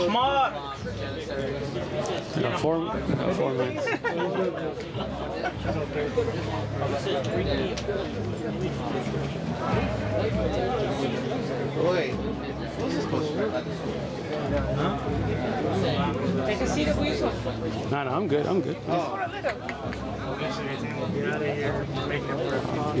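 A crowd murmurs in the background outdoors.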